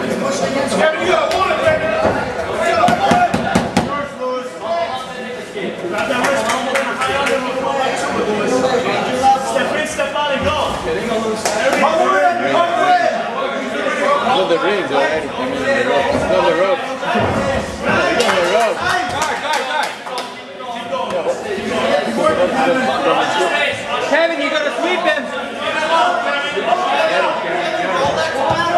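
A crowd of men shouts and cheers nearby.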